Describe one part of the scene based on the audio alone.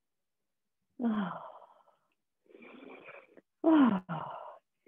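A woman makes sliding, falling vocal sounds over an online call.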